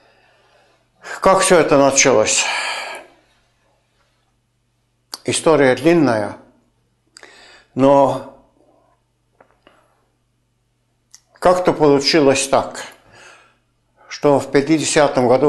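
An elderly man speaks calmly and close by, with pauses between phrases.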